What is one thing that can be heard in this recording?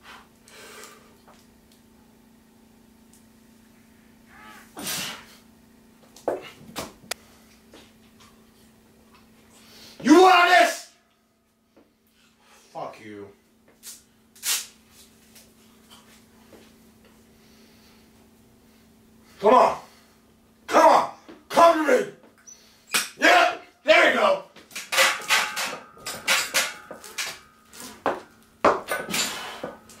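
A young man grunts with effort.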